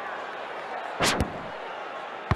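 A ball is kicked hard with a thud.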